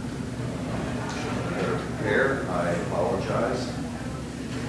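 A young man speaks briefly and quietly into a microphone.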